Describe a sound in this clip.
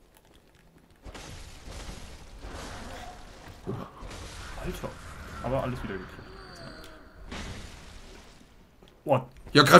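Sword blows clash and thud amid game noise.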